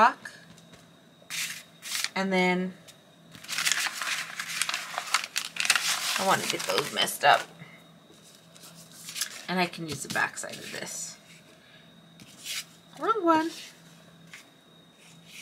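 Paper rustles and slides as sheets are handled.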